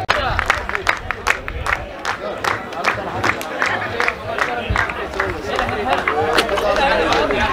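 A crowd claps along in a steady rhythm.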